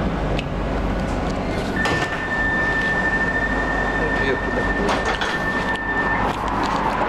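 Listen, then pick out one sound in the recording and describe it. A tram hums and rumbles steadily as it rides along.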